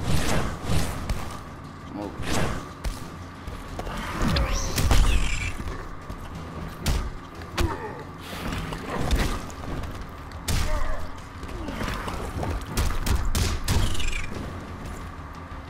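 Heavy punches and blows land with sharp thuds.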